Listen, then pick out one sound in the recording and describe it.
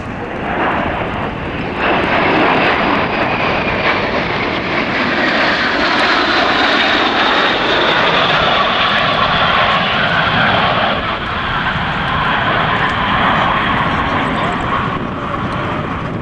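Jet engines roar loudly overhead.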